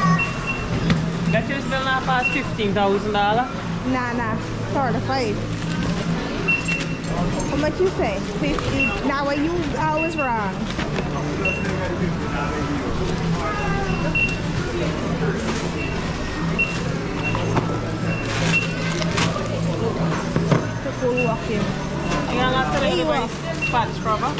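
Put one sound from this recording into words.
A checkout scanner beeps again and again.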